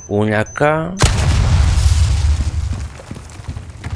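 A gunshot booms once.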